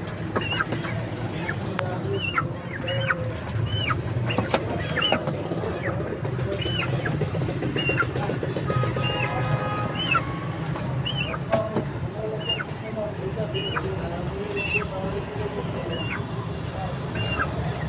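A chicken cheeps again and again in short, high peeps.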